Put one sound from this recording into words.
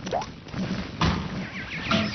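A cartoon bonk sounds.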